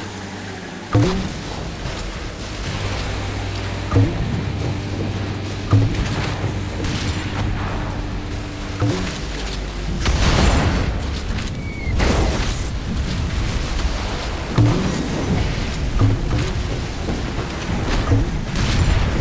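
Guns fire in short bursts with loud bangs.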